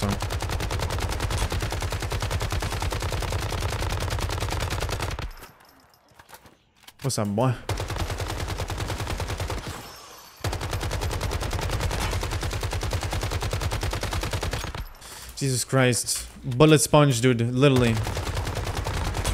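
Automatic gunfire rattles in long rapid bursts.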